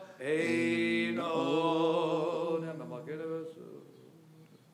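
A man chants a melody through a microphone, echoing in a large room.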